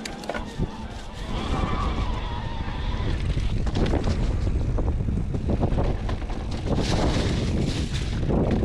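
Knobby tyres of an electric mountain bike roll and crunch over dirt and rocks.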